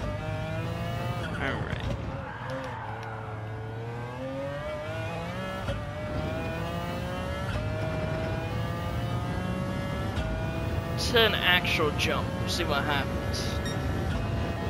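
A race car engine roars and revs higher through the gears.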